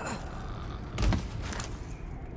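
A heavy thud of a landing on a hard floor.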